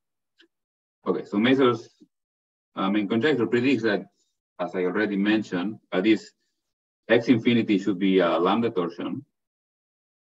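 A man lectures calmly over an online call.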